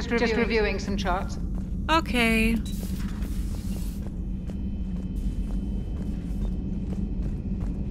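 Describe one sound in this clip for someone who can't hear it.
Footsteps tread on a metal floor.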